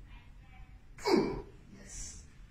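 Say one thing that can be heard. A woman cries out sharply, close by.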